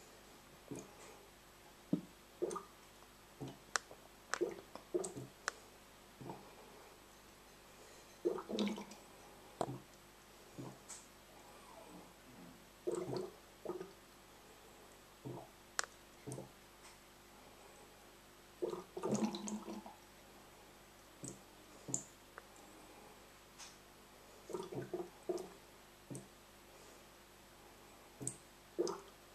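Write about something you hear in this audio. Airlocks on fermenting buckets bubble and gurgle now and then, close by.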